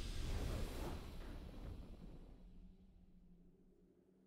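A loud triumphant whoosh bursts out and slowly fades.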